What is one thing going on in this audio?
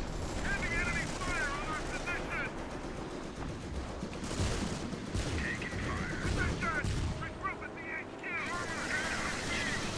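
Gunfire rattles and explosions boom in a battle.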